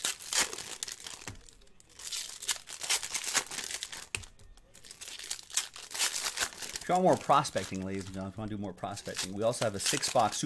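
Foil card wrappers crinkle and rustle as hands tear them open.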